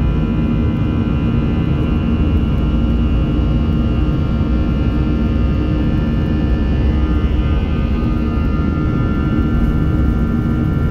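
A jet engine roars loudly and steadily with a high whine.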